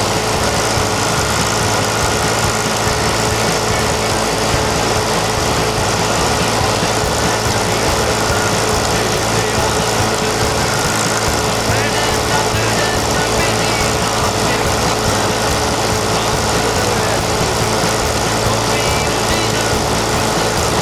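A tractor engine idles nearby.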